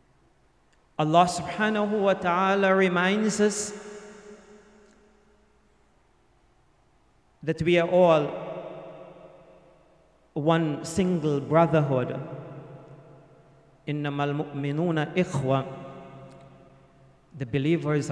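An older man recites in a melodic voice through a microphone, with echoing pauses between phrases.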